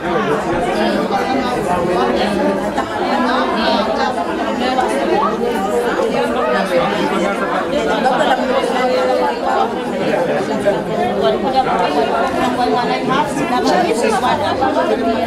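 A woman speaks into a microphone, heard through a loudspeaker.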